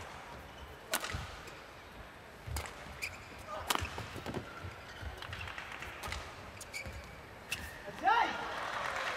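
Rackets strike a shuttlecock back and forth with sharp smacks.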